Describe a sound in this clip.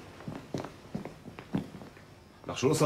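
Footsteps tap on a stone pavement.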